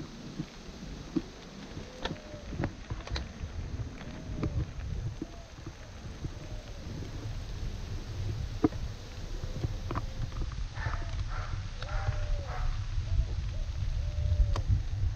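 Bicycle tyres crunch over a dirt track.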